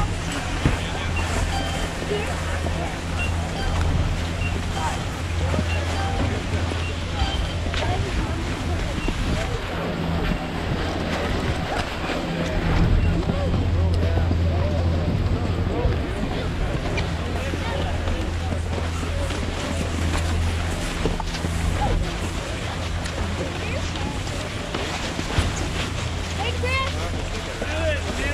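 A crowd of children and adults chatter nearby outdoors.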